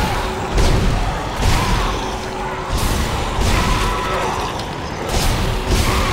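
A creature shrieks and snarls.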